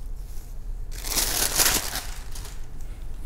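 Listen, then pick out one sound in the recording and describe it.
Silk fabric rustles as it is unfolded and handled.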